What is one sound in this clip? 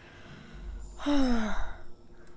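A falling whoosh rings out.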